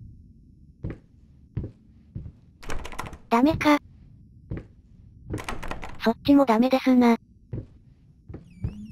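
A locked door rattles with dull thuds.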